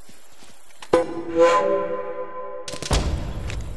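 A menu chime rings out and fades.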